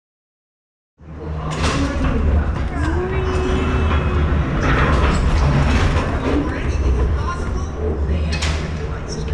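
A ride car rumbles and rattles along its track.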